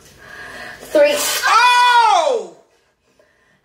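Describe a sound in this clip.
A young woman cries out sharply in pain.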